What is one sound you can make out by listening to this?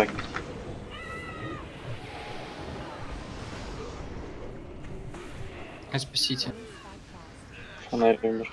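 Magic spells whoosh and crackle in a battle.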